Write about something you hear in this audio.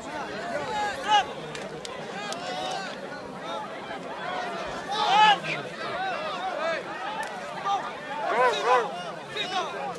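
Men shout from the crowd now and then.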